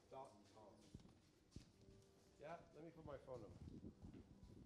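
A man speaks briefly nearby.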